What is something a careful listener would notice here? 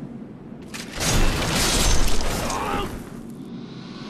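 A sword slashes and strikes an enemy.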